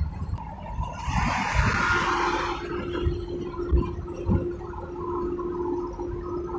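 Tyres roll over the road surface with a low rumble.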